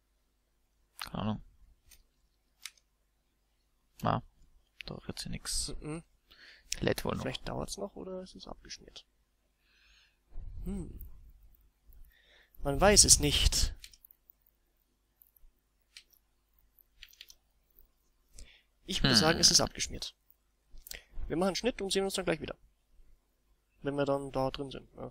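A young man talks calmly through a headset microphone, in short bursts.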